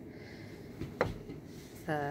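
A small plastic toy taps down onto a table.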